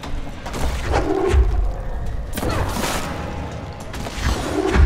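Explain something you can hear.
Concrete chunks smash and crash as a wall breaks apart.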